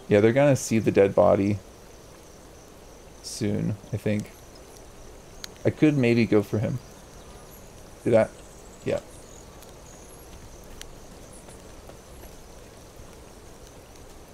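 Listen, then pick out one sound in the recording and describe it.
Tall dry grass rustles as someone creeps through it.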